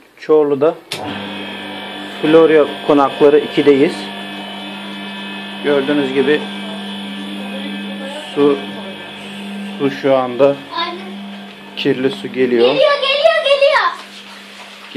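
A radiator flushing machine's pump hums.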